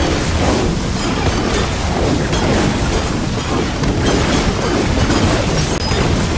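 Heavy blows thud and crash.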